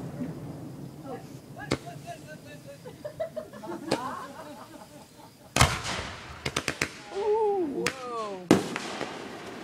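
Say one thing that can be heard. Rockets whistle as they shoot up into the sky.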